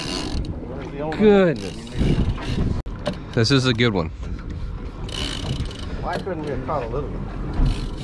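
A man speaks excitedly nearby outdoors.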